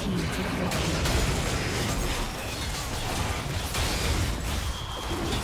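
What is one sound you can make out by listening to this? Magic spell effects whoosh and crackle in a busy fight.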